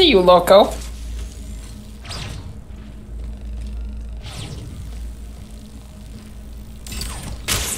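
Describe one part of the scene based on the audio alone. A portal whooshes in a video game.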